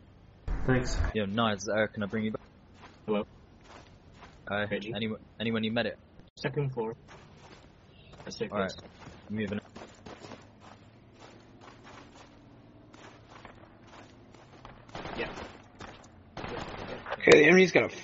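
Footsteps crunch on snow and creak on wooden floors.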